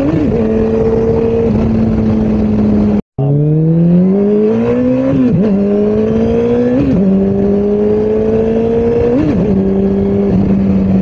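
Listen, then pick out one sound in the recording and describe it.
A motorcycle engine hums steadily, then climbs in pitch through several gear shifts.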